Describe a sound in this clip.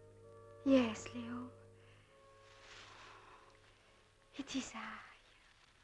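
A woman speaks expressively, close by.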